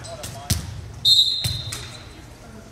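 A referee blows a short, shrill whistle.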